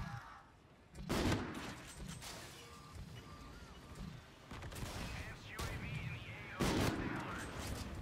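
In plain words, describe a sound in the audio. Sniper rifle shots bang loudly.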